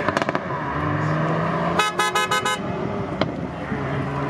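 Exhaust pops and crackles sharply from a car.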